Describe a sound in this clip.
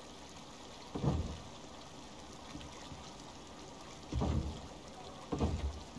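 Heavy wooden logs thud into place.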